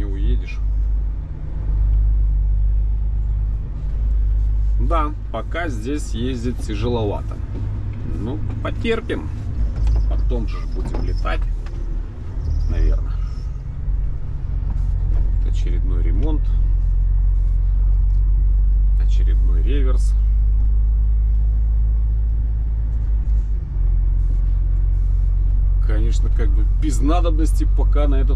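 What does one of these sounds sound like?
A heavy vehicle's engine rumbles steadily from inside the cab.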